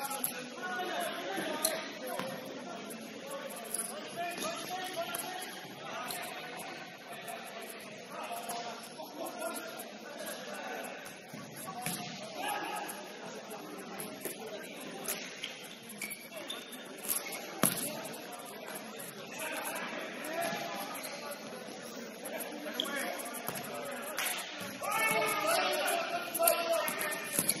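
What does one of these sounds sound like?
Players' shoes squeak and thud on a hard indoor court, echoing in a large hall.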